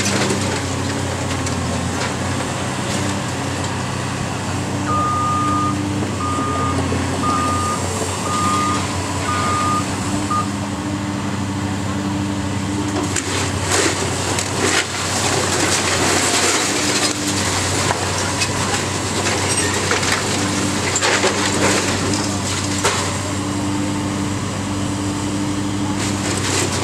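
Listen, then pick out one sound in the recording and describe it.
A large diesel engine rumbles steadily nearby.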